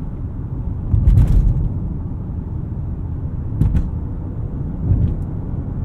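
Bumps thud under the car's tyres.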